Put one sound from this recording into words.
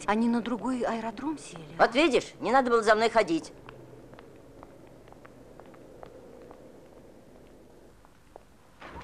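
Footsteps tap on wet pavement.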